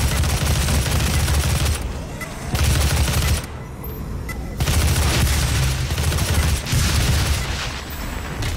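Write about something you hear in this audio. A heavy gun fires in loud, booming bursts.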